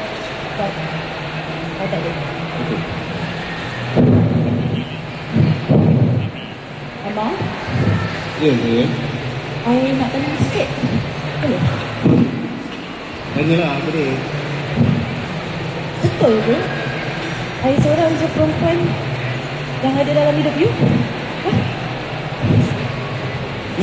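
A woman speaks with animation through a microphone and loudspeakers.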